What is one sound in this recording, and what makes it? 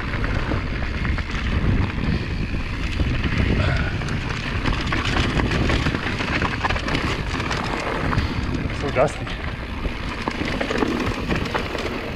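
Bicycle tyres crunch and rattle over a rocky dirt trail.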